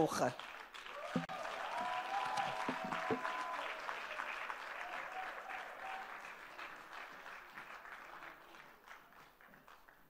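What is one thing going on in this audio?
A crowd applauds and cheers in a large room, then quiets down.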